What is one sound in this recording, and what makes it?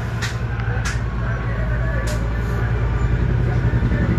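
A hot air tool blows with a low, steady rumble.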